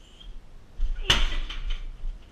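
A fist thuds hard into a heavy punching bag.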